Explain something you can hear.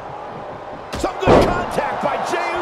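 A heavy body slams down onto a wrestling ring mat with a loud thud.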